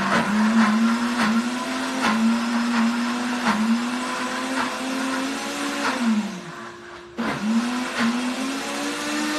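A blender whirs loudly in repeated short pulses, winding down and starting up again.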